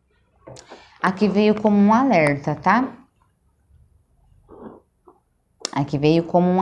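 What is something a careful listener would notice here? A woman speaks calmly and close to a microphone, in short bursts with pauses.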